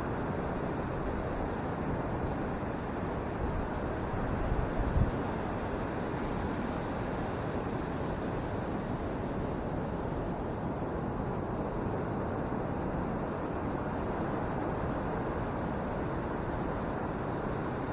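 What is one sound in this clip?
Ocean waves break and roll onto the shore in a steady rush.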